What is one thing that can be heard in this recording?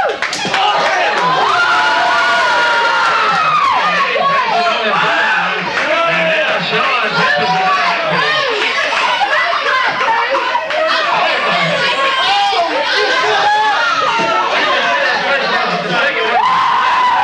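A crowd of spectators shouts and cheers loudly in an echoing hall.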